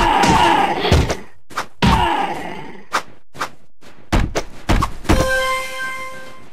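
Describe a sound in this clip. Swords clash and strike in a scuffle.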